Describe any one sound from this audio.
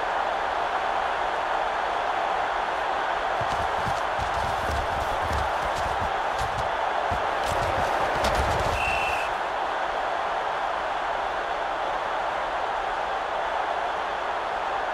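A crowd roars steadily in a large stadium.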